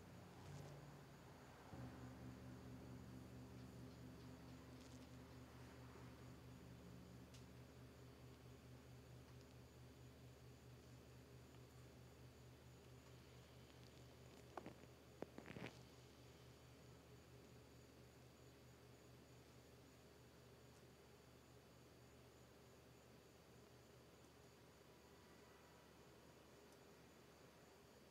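A large gong hums with a deep, low, wavering drone that slowly fades.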